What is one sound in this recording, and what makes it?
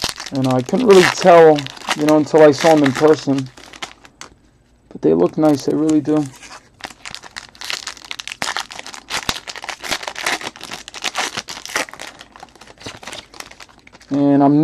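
Foil wrappers crinkle and tear as they are opened by hand.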